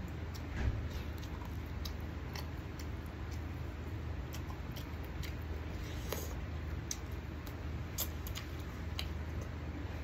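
A man bites and tears meat off a bone.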